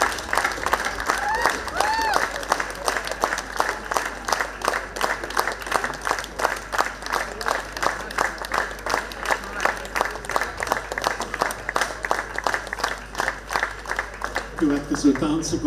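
A live folk band plays a lively, fast tune.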